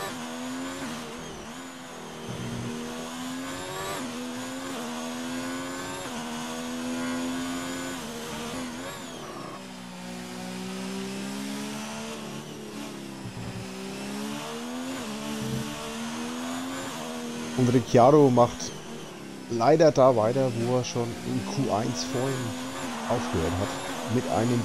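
A racing car engine whines loudly, its pitch rising and falling with gear changes.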